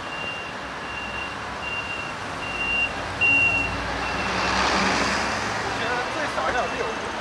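A car engine idles and rolls past close by.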